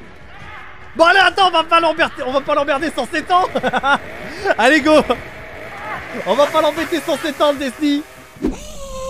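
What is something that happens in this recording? A man shouts and laughs loudly into a close microphone.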